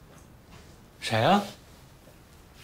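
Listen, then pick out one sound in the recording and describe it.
A man asks a short question.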